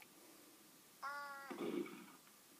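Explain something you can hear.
A short bright electronic chime rings out.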